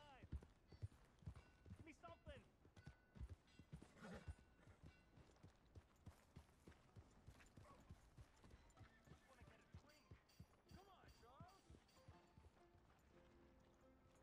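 A horse's hooves clop steadily on soft ground.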